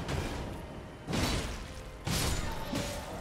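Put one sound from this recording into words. Swords clash with metallic rings.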